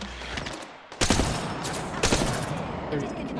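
Gunshots crack from a game weapon.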